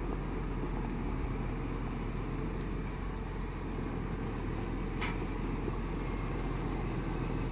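A diesel tractor engine rumbles as the tractor pulls a trailer.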